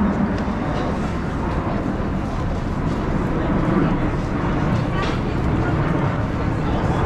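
A crowd murmurs and chatters along a busy street outdoors.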